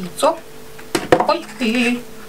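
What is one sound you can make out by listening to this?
An egg is set down on a scale with a soft tap.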